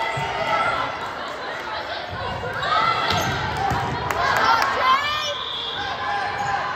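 Spectators chatter and cheer in a large echoing gym.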